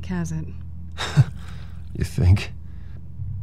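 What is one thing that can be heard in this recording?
A man answers in a tired, low voice.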